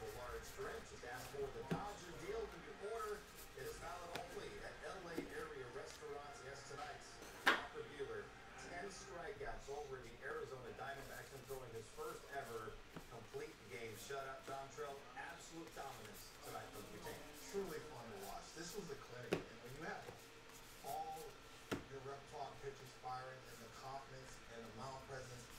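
Trading cards shuffle and flick against each other in a hand.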